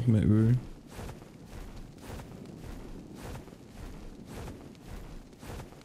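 Large wings flap with regular whooshing beats.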